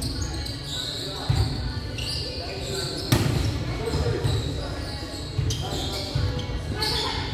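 Young men and women call out to each other at a distance.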